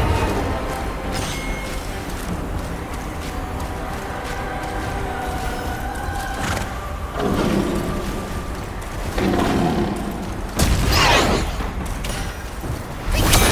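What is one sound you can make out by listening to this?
Whirlwinds roar and rush steadily.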